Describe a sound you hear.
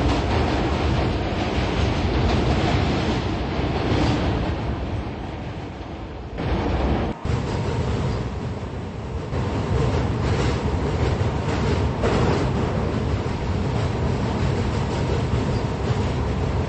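A subway train rumbles and rattles along the tracks through a tunnel.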